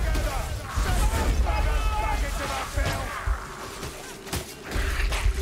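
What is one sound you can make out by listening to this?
Sharp weapon blows strike with heavy thuds.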